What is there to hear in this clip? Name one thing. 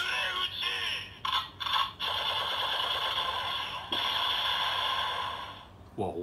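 A toy blaster plays loud electronic sound effects and music through a small, tinny speaker.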